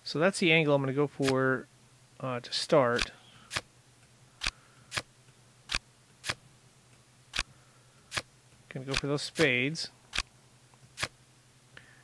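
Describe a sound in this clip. Playing cards click as they are moved and dropped into place.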